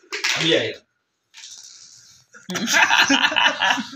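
Dice clatter onto a hard floor.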